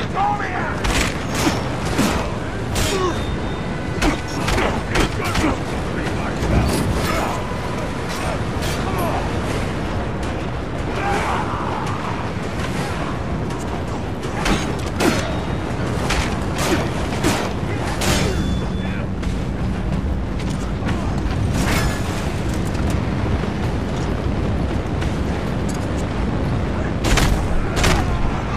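Punches and blows thud hard and fast in a brawl.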